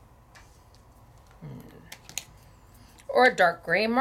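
A pen cap clicks off.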